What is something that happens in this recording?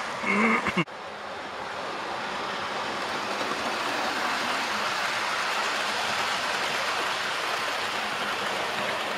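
A second model electric train rumbles out of a tunnel on model track.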